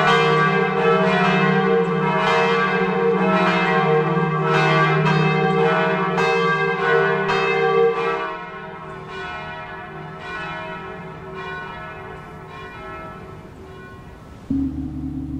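A large bell rings loudly with repeated strikes, then slowly fades away.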